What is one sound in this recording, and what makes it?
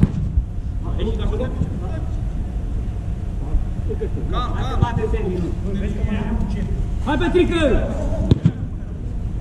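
Men shout to each other across a large echoing dome.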